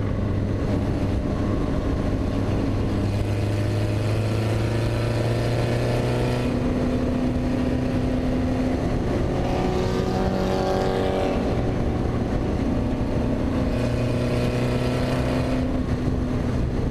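A race car engine roars loudly, its pitch rising and falling through the gears.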